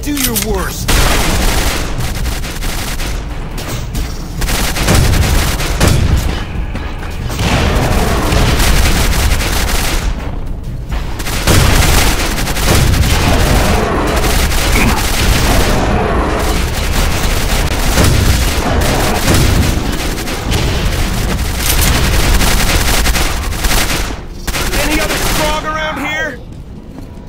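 Weapon shots boom and explosions blast repeatedly.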